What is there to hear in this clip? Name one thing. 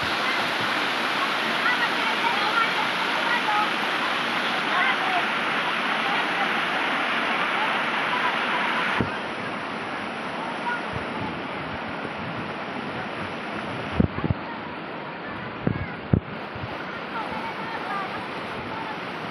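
Water splashes as children swim and jump in.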